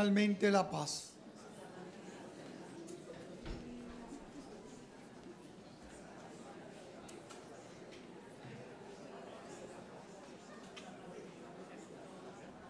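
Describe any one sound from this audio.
A crowd of men and women murmurs and chats softly.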